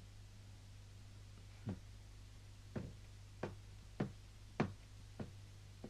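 Footsteps creak on wooden stairs.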